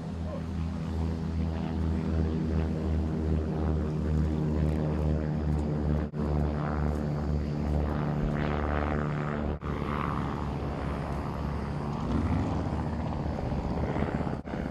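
A small aircraft engine drones overhead with a steady rhythmic throb.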